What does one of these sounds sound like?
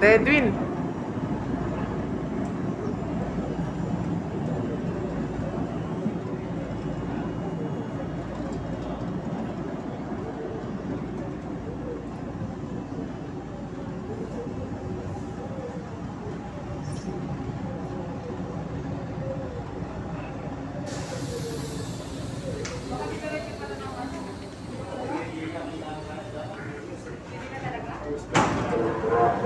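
A light rail train rumbles along the track.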